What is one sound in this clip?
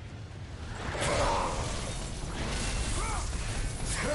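A heavy blow lands with a crashing impact.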